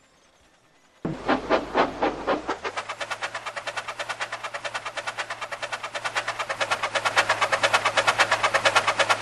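A steam engine chuffs in quick, steady puffs that speed up.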